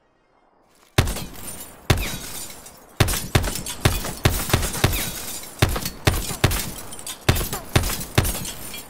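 A gun fires in rapid bursts, loud and close.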